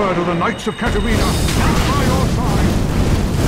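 A burst of flame roars loudly.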